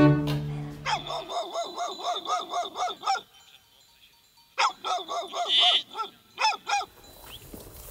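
Sheep bleat repeatedly nearby.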